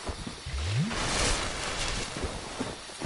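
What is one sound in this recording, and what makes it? A burst of fire whooshes and crackles.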